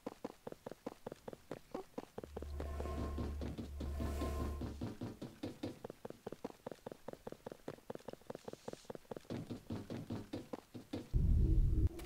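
Footsteps tap quickly and evenly on a metal floor.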